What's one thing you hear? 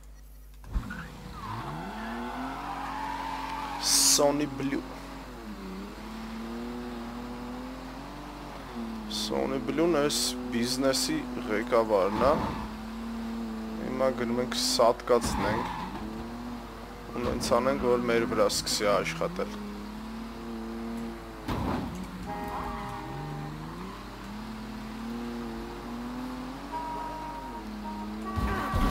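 A car engine revs up and down as the car speeds along.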